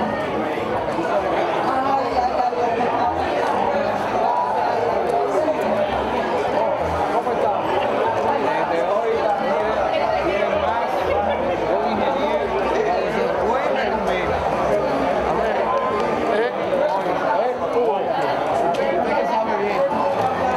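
A crowd of men and women chatters loudly all around.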